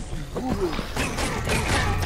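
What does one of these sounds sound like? Weapons strike and clash in quick hits during a fight.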